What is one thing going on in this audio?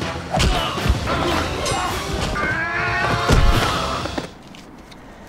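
Swords clash loudly in a fight.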